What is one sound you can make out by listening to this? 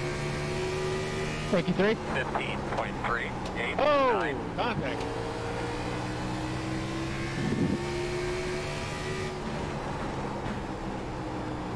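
Racing car engines drone steadily at high revs.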